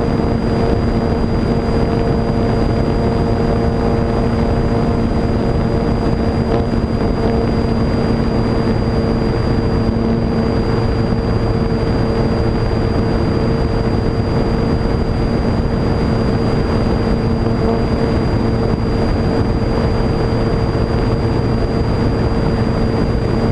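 Wind rushes loudly past the aircraft.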